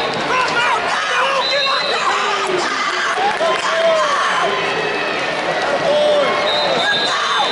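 A crowd of spectators shouts and cheers in a large echoing arena.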